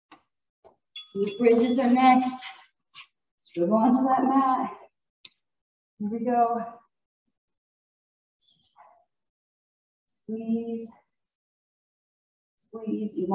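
A young woman speaks calmly, close by, in short phrases.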